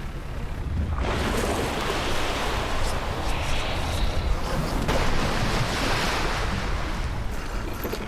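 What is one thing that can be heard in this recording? Water splashes and rushes around a moving boat.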